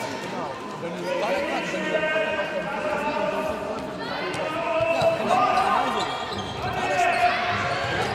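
Young girls shout and cheer in a large echoing hall.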